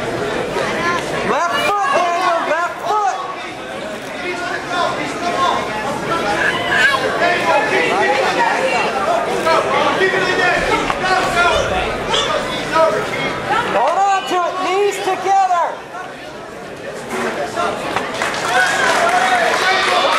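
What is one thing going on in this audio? A crowd of men and women shouts and cheers loudly in an echoing hall.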